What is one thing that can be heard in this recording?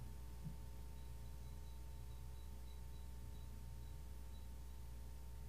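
Soft metal chimes ring faintly.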